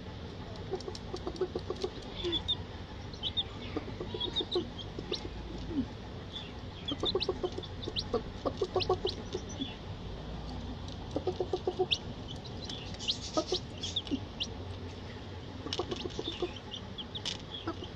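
Chicks cheep and peep in high, quick chirps nearby.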